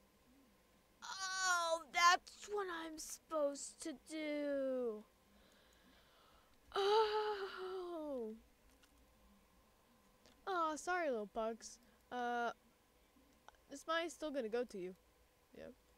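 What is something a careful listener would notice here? A boy talks with animation into a close microphone.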